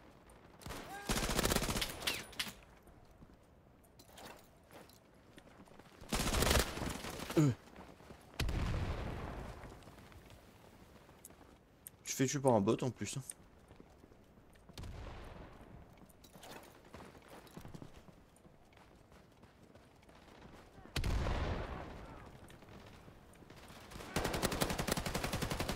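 Rapid gunfire bursts out in short loud volleys.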